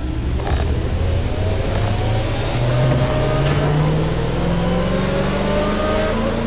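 A powerful sports car engine roars and climbs in pitch as the car speeds up.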